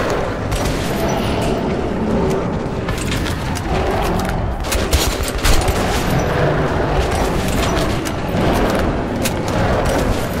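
A monster snarls and shrieks close by.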